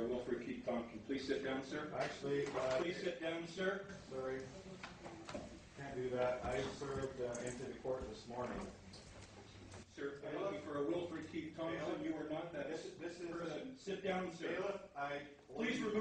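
A man speaks firmly and at length, close by.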